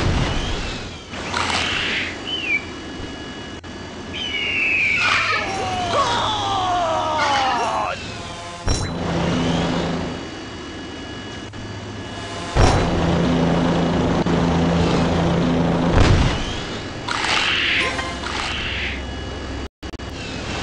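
A rocket engine roars and hisses.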